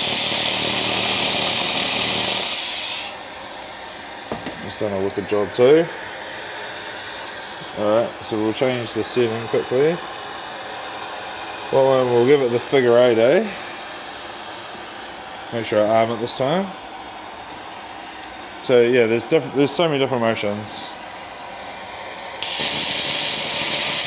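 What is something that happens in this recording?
A power grinder whirs loudly against metal.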